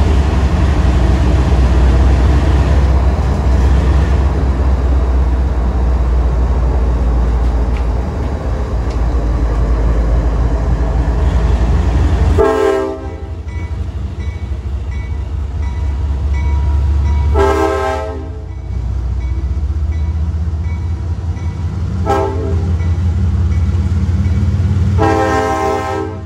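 A diesel locomotive rumbles loudly past close by.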